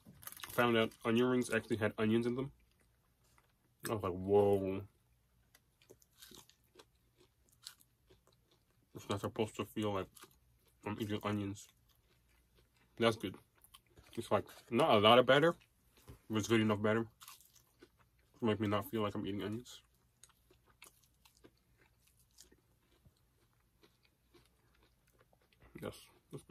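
A man chews crunchy food.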